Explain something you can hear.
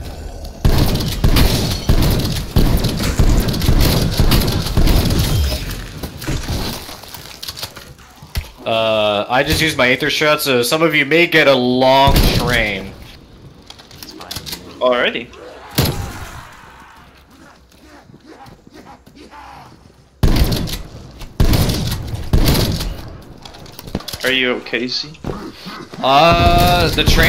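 Shotgun blasts fire in rapid bursts.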